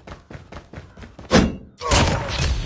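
A knife slashes sharply.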